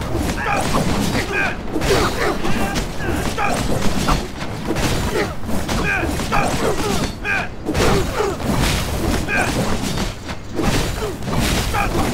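Swords clash and strike repeatedly in a fierce fight.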